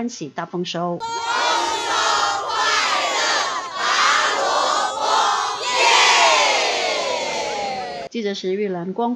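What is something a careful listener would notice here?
A large crowd of women and men cheers and shouts loudly outdoors.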